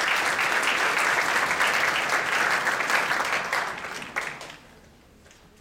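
An audience applauds loudly in a large hall, then the clapping dies away.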